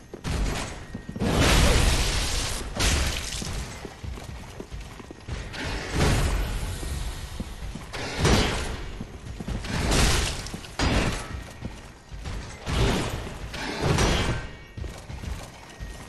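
Heavy armoured footsteps thud on stone.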